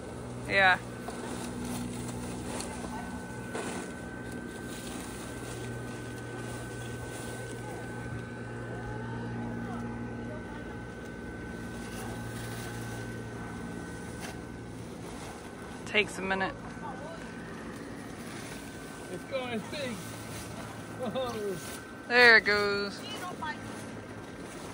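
Nylon fabric rustles and flaps as it is handled.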